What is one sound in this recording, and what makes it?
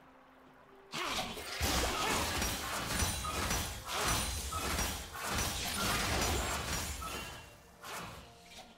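Magic blasts whoosh and crackle in a busy fight.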